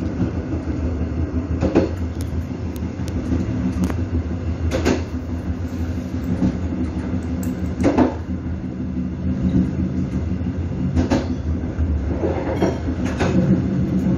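A diesel train rumbles along a railway track.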